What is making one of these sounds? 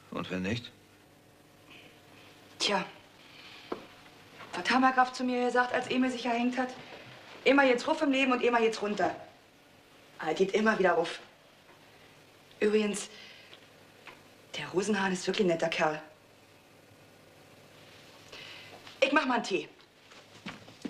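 A young woman speaks calmly and pleasantly nearby.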